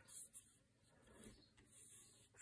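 A hand slides softly over a wooden gun stock.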